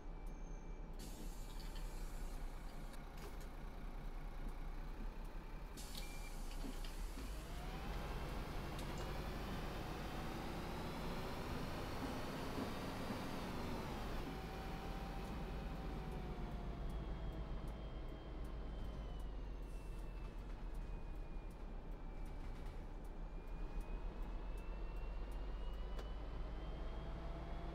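A bus engine idles with a low hum, then revs up as the bus pulls away and changes gear.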